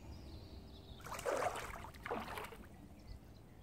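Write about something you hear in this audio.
A fish splashes at the surface of the water.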